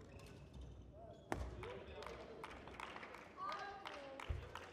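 Sports shoes squeak sharply on a hard court floor.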